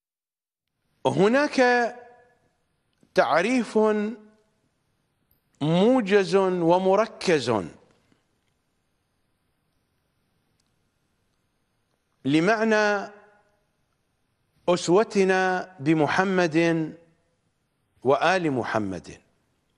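A middle-aged man speaks with animation into a microphone, in short bursts with pauses.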